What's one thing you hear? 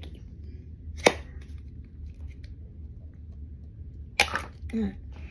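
A plastic toy clicks in a girl's hands.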